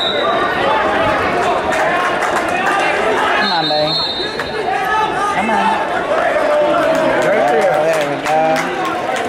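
Wrestling shoes squeak and thud on a mat.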